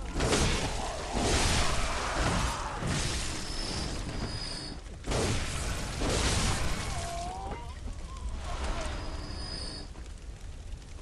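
Blades slash and strike in a fierce fight.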